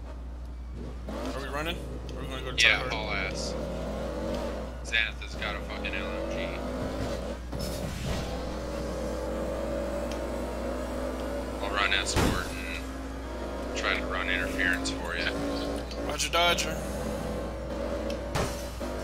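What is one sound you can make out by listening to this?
A car engine hums and revs while driving.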